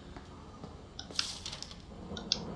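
Paper rustles as it is picked up.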